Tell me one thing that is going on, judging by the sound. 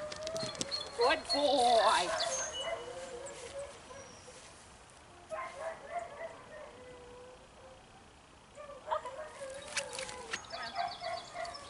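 A young woman talks in a bright, encouraging voice nearby, outdoors.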